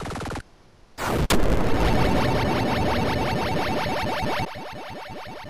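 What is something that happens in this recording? A bright, cheerful fanfare rings out.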